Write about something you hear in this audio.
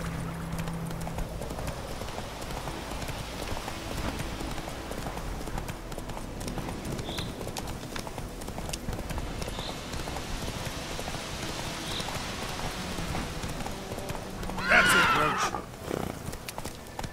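Horse hooves pound steadily on a dirt path.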